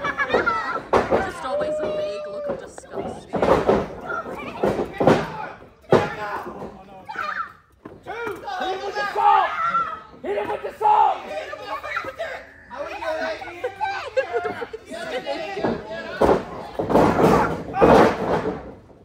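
Wrestlers' bodies slam onto a ring mat with loud thuds.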